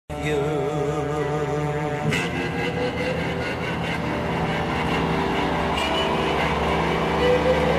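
Live music plays loudly through huge speakers, echoing across a vast open stadium.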